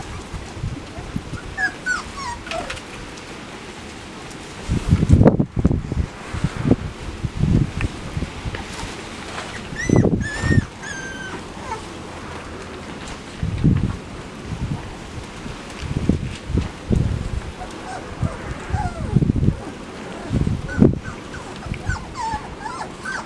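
Puppies scuffle and paw at each other close by.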